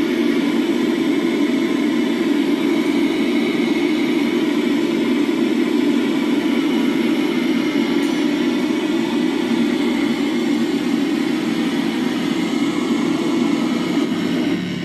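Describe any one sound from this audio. A harsh electronic noise drone roars steadily through a loudspeaker.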